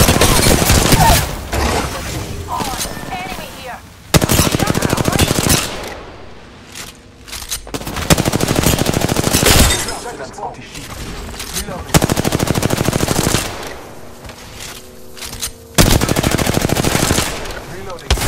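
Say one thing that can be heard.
Rapid gunfire rattles in fast bursts.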